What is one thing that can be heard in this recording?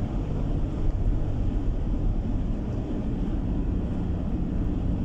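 Tyres roll with a low, steady rumble on the road.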